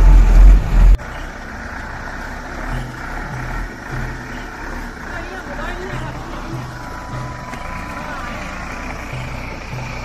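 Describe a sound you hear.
A truck engine rumbles as the truck drives slowly toward the listener.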